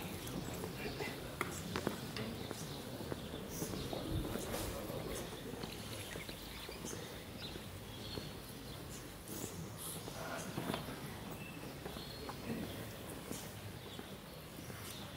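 A large outdoor crowd murmurs quietly.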